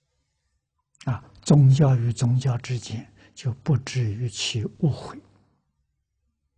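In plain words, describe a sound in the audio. An elderly man speaks calmly into a clip-on microphone.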